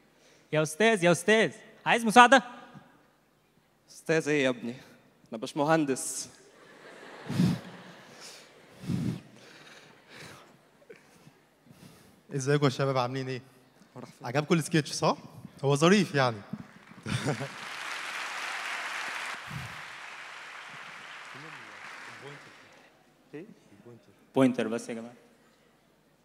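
A young man speaks with animation through a microphone in a large hall.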